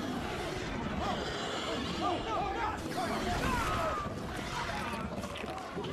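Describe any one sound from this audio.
A creature shrieks and snarls.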